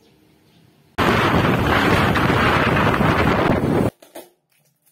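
Wind roars loudly over the microphone outdoors.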